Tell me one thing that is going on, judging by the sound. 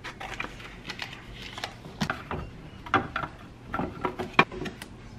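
Hands knock and press a rigid piece into place.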